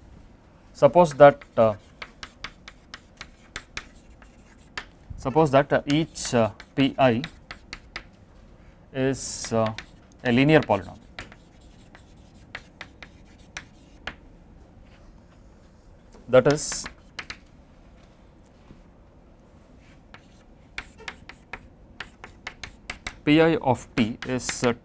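A man speaks calmly and slowly, as if lecturing, in short bursts with pauses.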